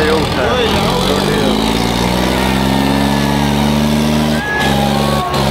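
A tractor engine revs up loudly.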